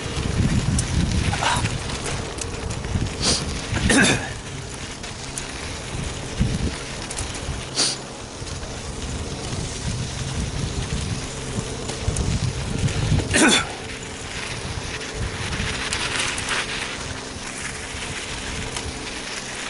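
Tyres crunch and rattle over gravel and rocks.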